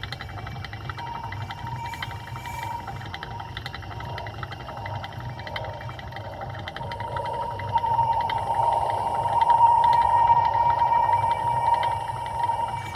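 A hamster's exercise wheel squeaks as it turns, growing louder.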